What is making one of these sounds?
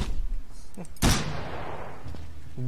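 A shotgun fires once with a loud boom that rings out.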